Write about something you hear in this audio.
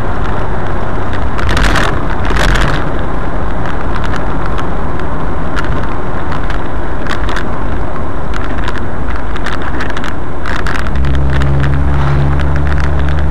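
A car engine hums with a steady low rumble.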